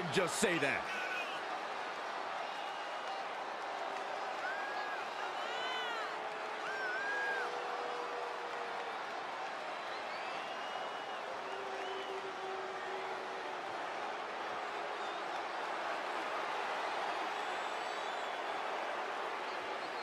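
A large crowd cheers and whistles steadily in a big echoing arena.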